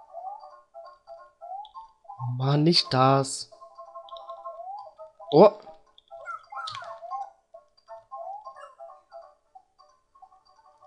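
Bouncy chiptune game music plays steadily.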